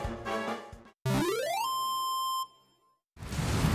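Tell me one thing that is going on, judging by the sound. A short musical jingle plays.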